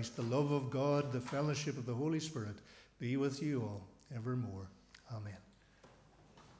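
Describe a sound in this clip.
A middle-aged man speaks loudly and with feeling through a microphone in an echoing hall.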